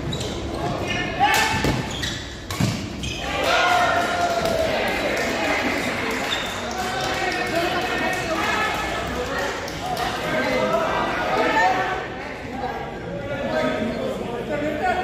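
Spectators chatter and call out throughout, in a large echoing hall.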